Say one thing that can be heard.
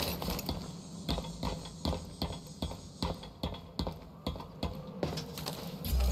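Footsteps tap quickly along a narrow metal beam.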